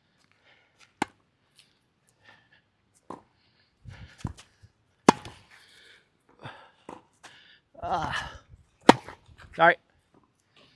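Tennis balls are struck with a racket with sharp pops.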